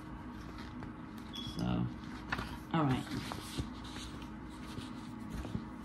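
Paper pages rustle and flutter as a notebook is flipped through.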